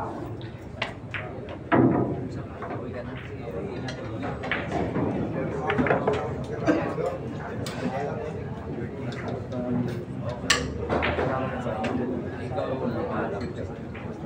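A crowd of men chatters in the background.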